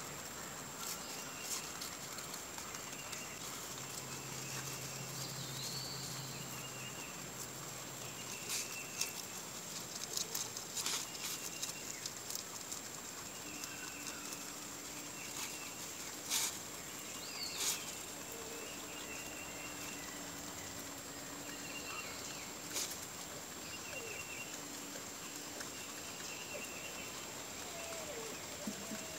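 Rabbits munch and crunch fresh leafy greens close by.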